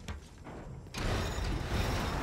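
A large metal wheel grinds and rumbles as it turns.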